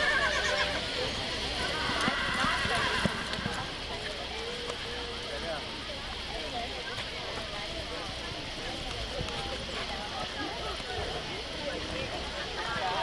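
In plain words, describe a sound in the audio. A horse gallops, its hooves thudding on soft dirt.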